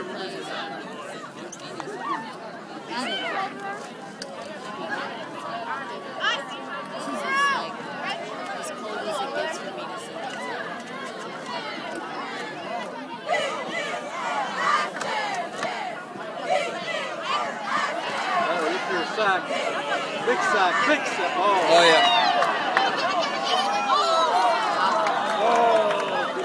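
A crowd of spectators chatters all around, outdoors.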